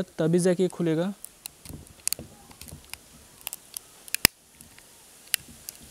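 A screwdriver pries and clicks against a plastic casing.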